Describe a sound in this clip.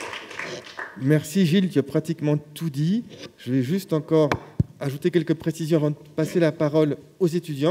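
A man speaks calmly into a microphone in a hall.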